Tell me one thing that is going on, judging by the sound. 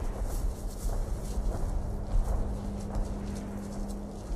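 Footsteps crunch on dry ground and twigs.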